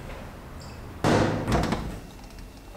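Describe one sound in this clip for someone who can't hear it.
Metal parts clink and clatter close by.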